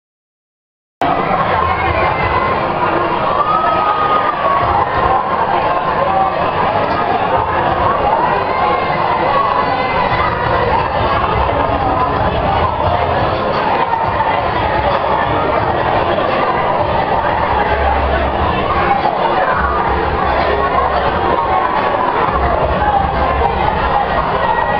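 A crowd of adults and children chatters in a large echoing hall.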